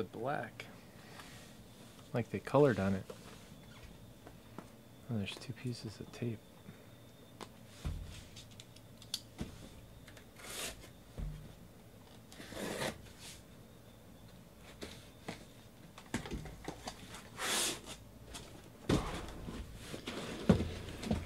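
Cardboard scrapes and thumps as a box is handled.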